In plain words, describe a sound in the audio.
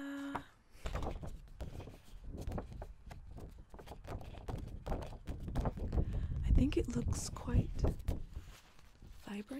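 A paper poster rustles and crinkles as it is handled.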